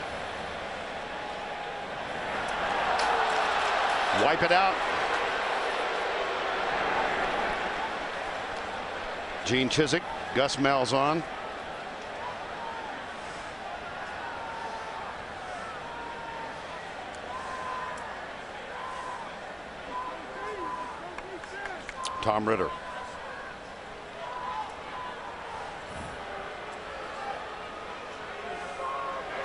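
A large crowd roars in an open stadium.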